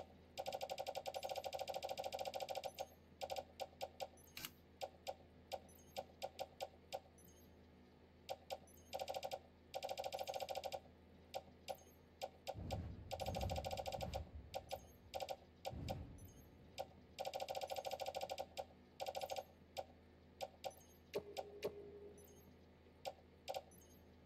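Menu interface sounds tick and beep quickly as items are scrolled.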